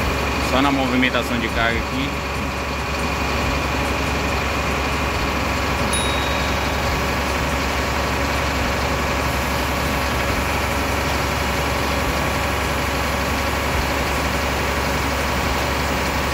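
A truck engine runs with a steady low drone.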